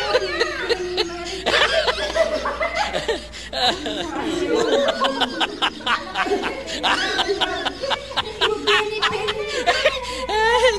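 Young women laugh and chatter excitedly close by.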